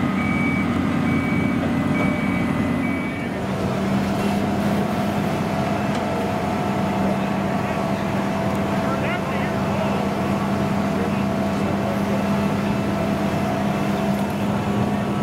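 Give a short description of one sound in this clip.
A fire engine's diesel engine idles with a loud, steady drone.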